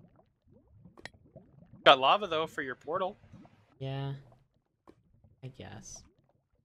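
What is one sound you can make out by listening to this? Lava bubbles and pops softly.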